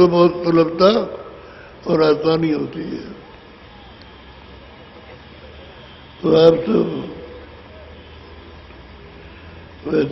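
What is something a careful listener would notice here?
An elderly man sings loudly into a microphone in short phrases, with pauses between them.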